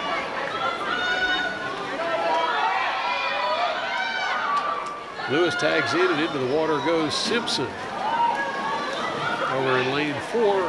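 A crowd of spectators cheers and shouts loudly in an echoing hall.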